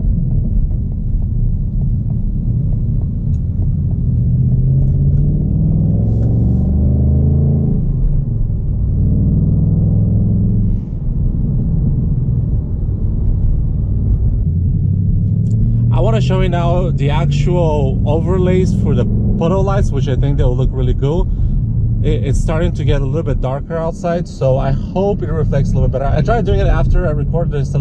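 A car engine roars and revs up and down as the car speeds along.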